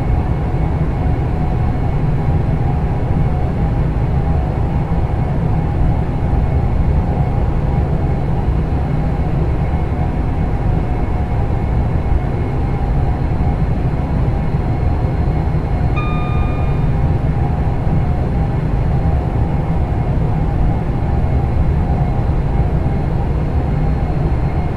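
A train's motor hums and rumbles steadily as it runs along the track.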